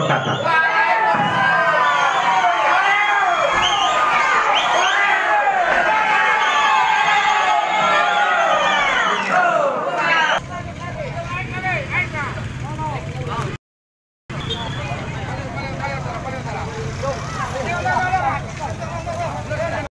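A crowd of men talks and calls out outdoors.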